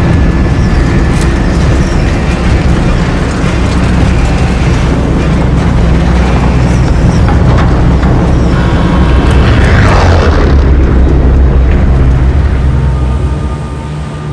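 A large propeller plane's engines drone steadily close by.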